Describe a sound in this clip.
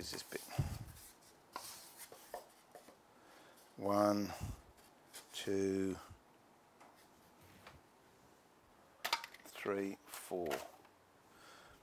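Thin wooden boards knock and clatter against each other.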